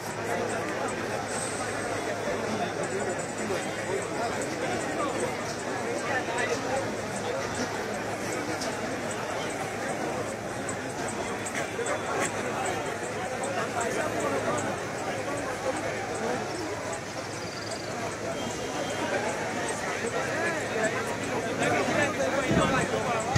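A large crowd murmurs and shouts outdoors, close by.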